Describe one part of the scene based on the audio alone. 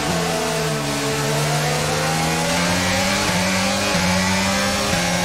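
A racing car engine screams at high revs, rising in pitch and dropping briefly with each gear change.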